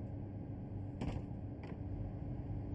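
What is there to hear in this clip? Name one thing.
A door clicks shut.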